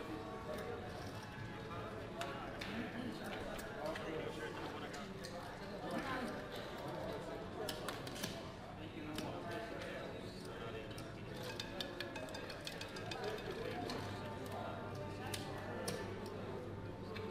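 Casino chips click and clatter as they are stacked and slid.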